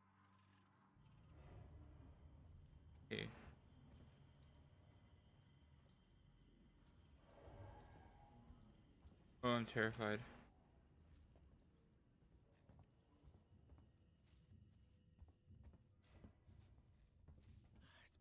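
Footsteps thud on a metal floor.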